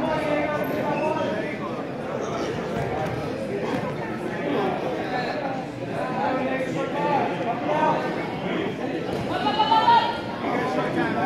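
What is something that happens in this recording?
Several people shout and cheer in a large echoing hall.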